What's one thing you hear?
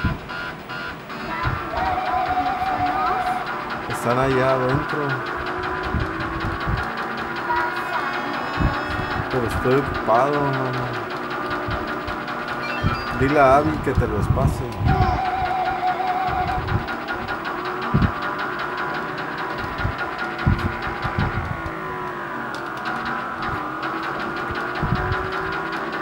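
Video game music plays through a television speaker.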